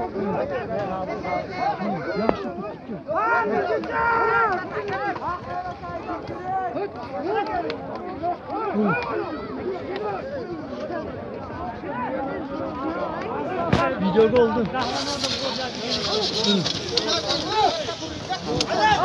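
A large crowd of men shouts and calls out all around, close by.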